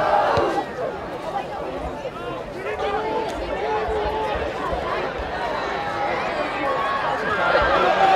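A crowd of spectators shouts and cheers outdoors, growing louder toward the end.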